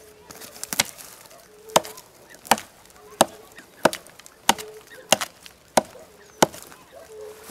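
A hatchet chops into a rotten tree stump with repeated dull thuds.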